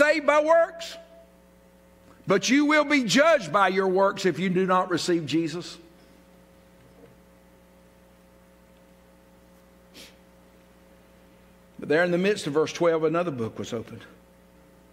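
A middle-aged man speaks with animation into a microphone, in a room with a slight echo.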